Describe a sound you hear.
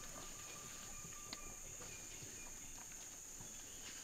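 Dry leaves crunch under an orangutan moving on the ground.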